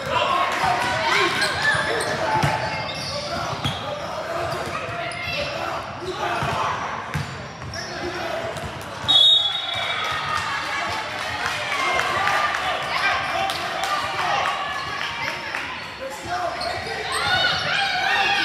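Children shout and call out across a large echoing gym.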